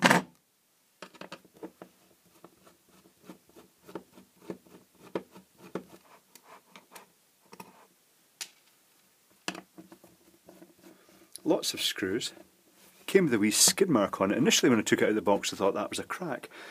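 Fingers tap and rub on a plastic cover.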